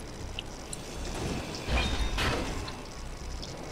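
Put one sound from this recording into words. A grinder whirs against metal.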